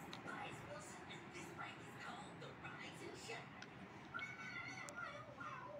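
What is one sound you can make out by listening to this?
A television plays a lively cartoon soundtrack with music nearby.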